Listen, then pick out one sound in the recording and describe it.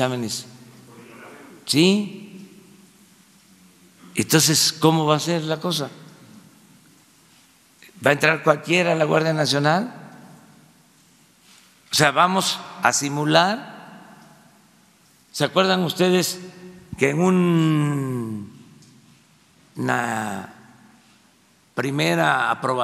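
An elderly man speaks slowly and deliberately into a microphone, with pauses, in a room with some echo.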